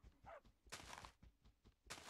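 A shovel digs into grass with soft crunching thuds.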